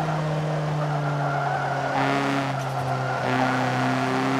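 Tyres squeal as the car slides through a bend.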